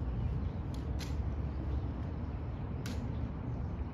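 A rifle's metal parts click sharply a few times.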